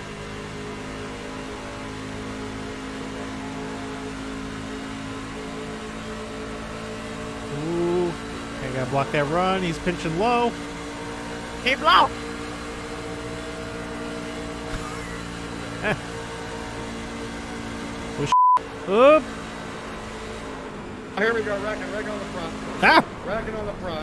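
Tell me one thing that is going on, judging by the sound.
A V8 race truck engine drones at full throttle.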